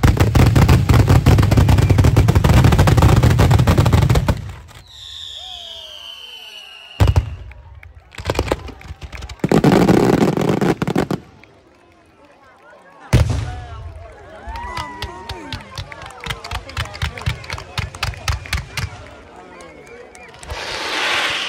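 Fireworks crackle and pop in rapid bursts outdoors.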